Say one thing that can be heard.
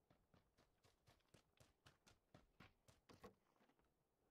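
Footsteps run across dirt and grass.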